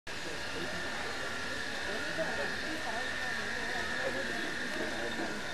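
A crowd of people murmurs and chatters nearby outdoors.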